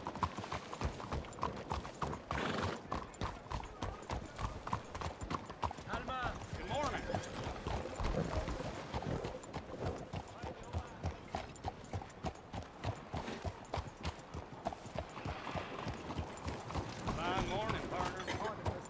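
Horse hooves clop steadily on a hard street.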